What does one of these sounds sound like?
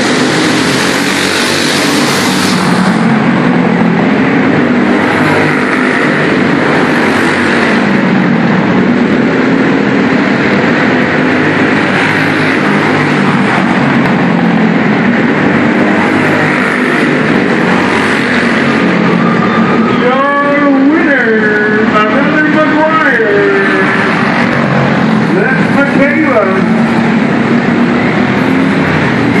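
Kart engines buzz and roar around a large echoing hall.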